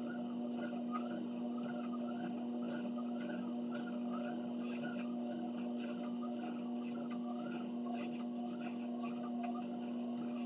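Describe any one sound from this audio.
Footsteps thud rhythmically on a treadmill belt.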